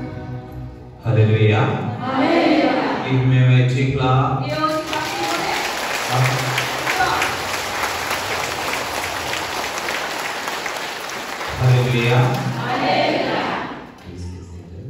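A man leads through a loudspeaker, calling out with fervour.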